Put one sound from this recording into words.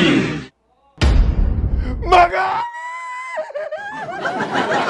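A young man screams loudly.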